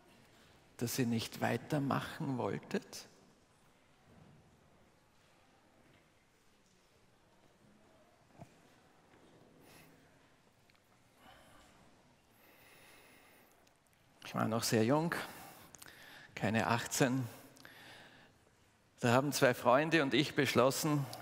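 A middle-aged man speaks calmly into a microphone in a large echoing hall, with long pauses.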